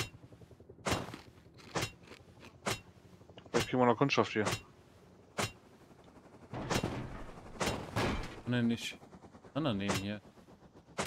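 A hatchet strikes repeatedly with dull thuds.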